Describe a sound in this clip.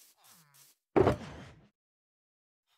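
A box opens with a thud.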